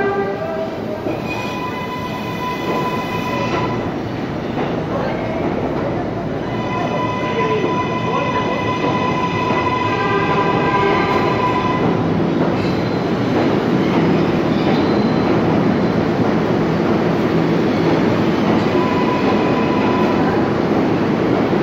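An electric subway train's motors whine as the train pulls out of an underground station.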